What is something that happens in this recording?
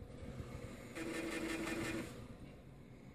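A computer's disc drive whirs and spins.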